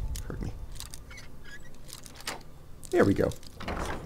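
A metal lock clicks and scrapes as a pick turns in it.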